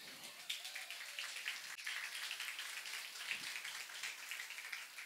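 A crowd claps and applauds steadily.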